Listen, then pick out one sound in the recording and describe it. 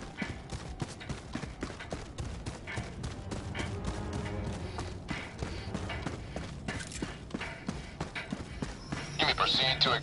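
Footsteps crunch quickly through grass and dirt.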